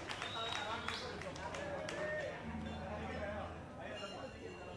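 A live band plays amplified music in a large room.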